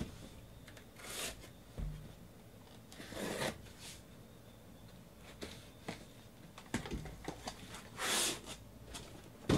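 Packing tape rips as it is cut and pulled away.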